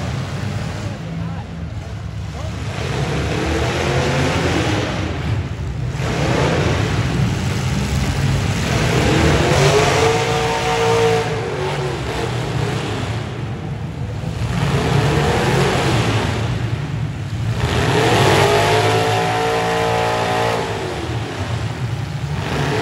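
Engines roar and rev loudly as cars spin their tyres.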